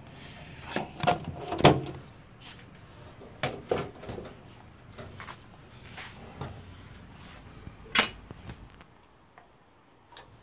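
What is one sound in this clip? A metal panel knocks and clatters as a hand moves it.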